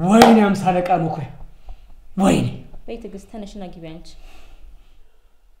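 A man speaks forcefully nearby.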